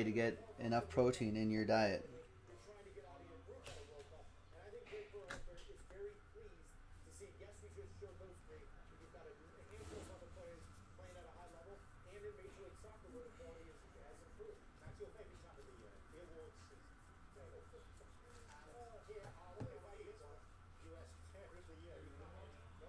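Trading cards rustle and slide in a man's hands.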